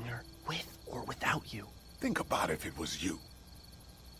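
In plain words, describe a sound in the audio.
A young man speaks urgently and close.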